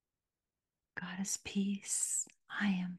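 An elderly woman speaks calmly close to a microphone.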